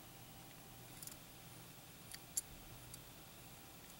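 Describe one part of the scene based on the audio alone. A small toy car clicks softly as it is turned in the hand.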